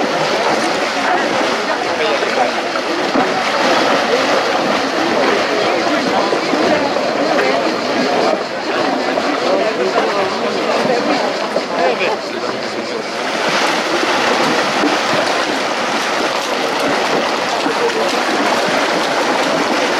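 Horses splash steadily through shallow water.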